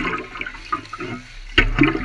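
Water pours and trickles onto gravel.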